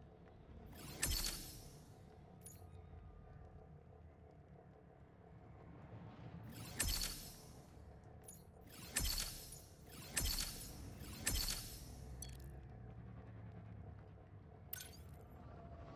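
Game menu chimes and whooshes ring out as upgrades unlock.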